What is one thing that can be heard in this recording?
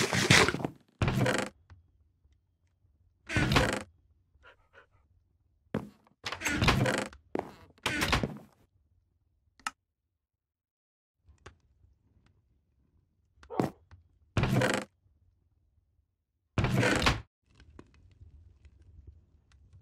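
A wooden chest creaks open and shut.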